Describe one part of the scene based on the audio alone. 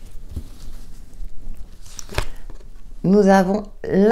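A card is laid down softly on a cloth.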